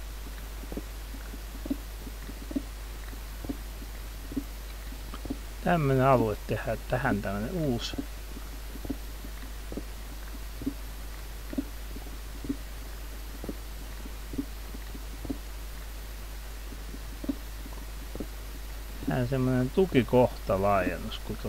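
Stone blocks crunch and crack as a pickaxe breaks them, one after another.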